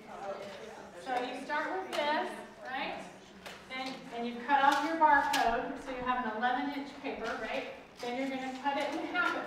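A woman speaks with animation, addressing a room.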